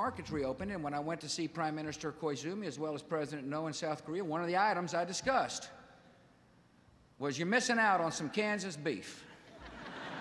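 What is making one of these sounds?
A middle-aged man speaks with emphasis into a microphone, echoing slightly in a large hall.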